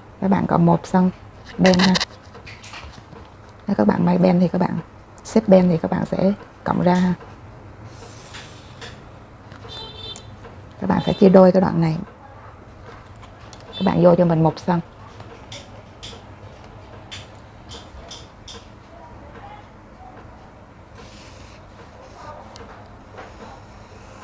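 A marker pen squeaks faintly as it draws lines on paper.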